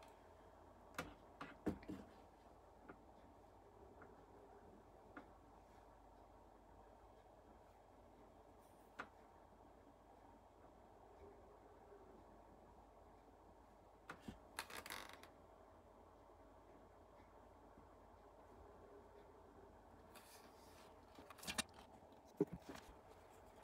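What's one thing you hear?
A rifle is set down on a hard surface with knocks.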